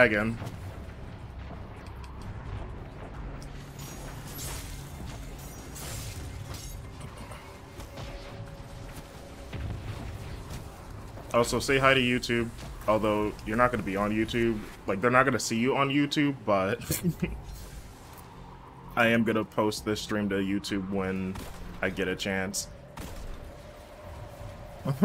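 Gunfire and blasts sound from a video game.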